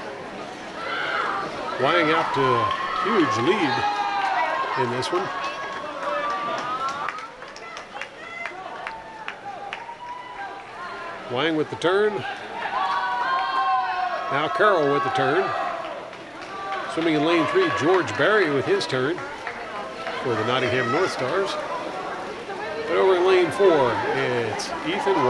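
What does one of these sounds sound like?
Young women cheer and shout loudly nearby in an echoing hall.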